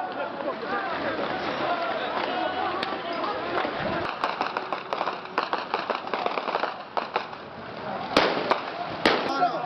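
A crowd of men shouts and calls out in the open air.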